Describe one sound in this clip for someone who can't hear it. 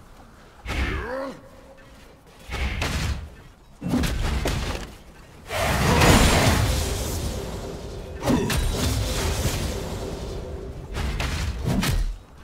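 Game characters clash with thuds and impacts.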